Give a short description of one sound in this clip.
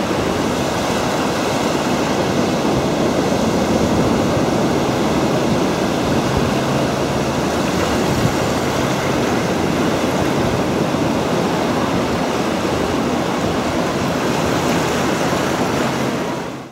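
Strong wind roars and buffets loudly outdoors.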